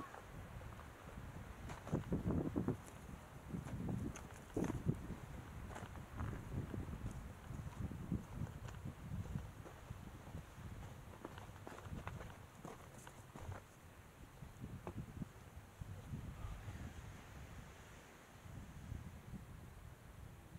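Wind gusts and buffets against the microphone outdoors.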